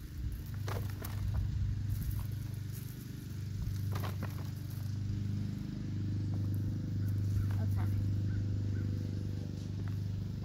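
Hands scoop and crumble damp soil.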